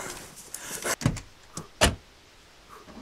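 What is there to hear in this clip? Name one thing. A vehicle door opens and slams shut.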